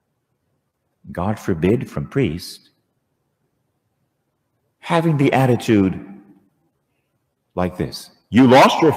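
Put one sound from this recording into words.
A man speaks slowly and calmly through a microphone in a large echoing hall.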